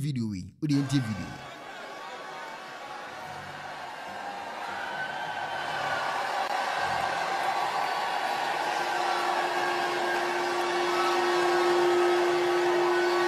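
A large crowd cheers and chatters in a big echoing hall.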